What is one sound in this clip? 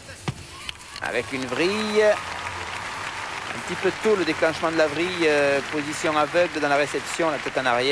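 A crowd applauds and cheers in a large echoing hall.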